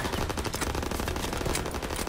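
A rifle bolt clicks during a reload.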